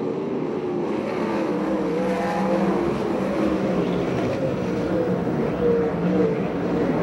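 Race car engines roar and whine around a dirt track.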